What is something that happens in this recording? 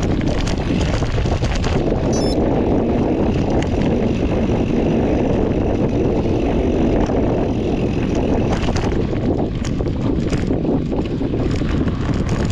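Bicycle tyres roll and crunch steadily over a dirt trail.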